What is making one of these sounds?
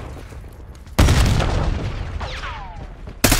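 A loud explosion booms nearby.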